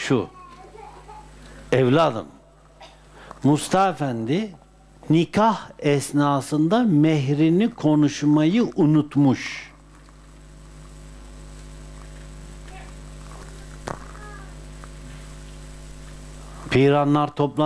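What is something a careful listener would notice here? An elderly man speaks calmly and slowly, close by, through a microphone.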